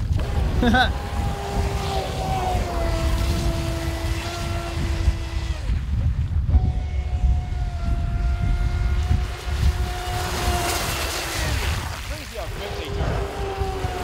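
Water sprays and hisses behind a speeding model boat.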